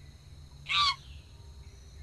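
A gorilla lets out a loud, short shriek.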